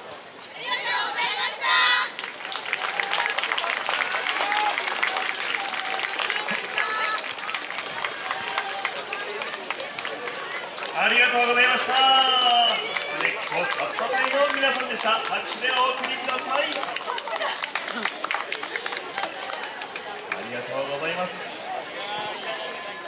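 Festive dance music with singing plays loudly outdoors.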